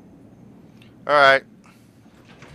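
An elevator door opens with a loud whir.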